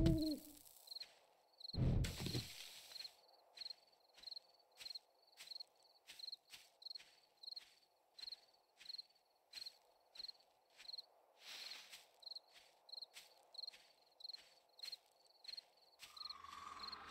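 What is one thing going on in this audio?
Footsteps crunch steadily through grass and gravel.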